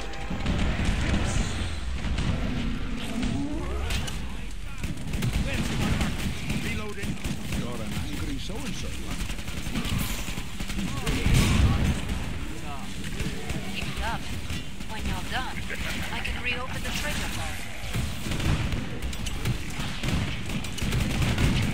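Monsters snarl and shriek.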